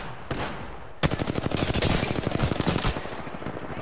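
A rifle fires in rapid bursts at close range.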